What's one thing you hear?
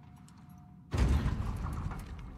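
A metal hatch bangs open.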